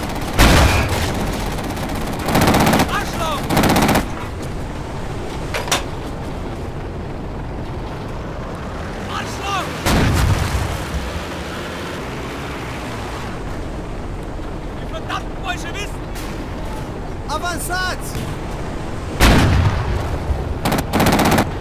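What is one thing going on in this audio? A tank cannon fires with loud booming blasts.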